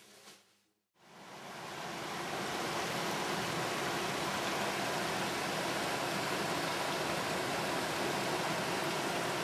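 A stream rushes steadily over rocks outdoors.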